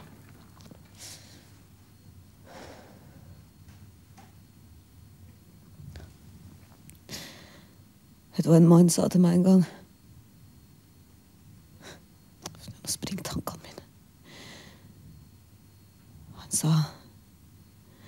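A young woman sobs and cries out in distress.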